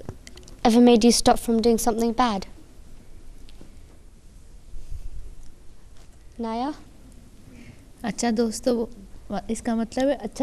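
A young woman speaks with animation into a microphone.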